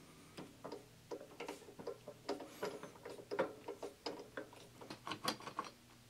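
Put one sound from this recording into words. A metal tap scrapes as it is turned into steel by hand.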